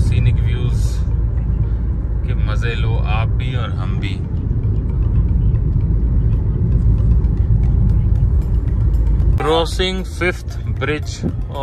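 A car engine hums steadily with road rumble from inside the moving car.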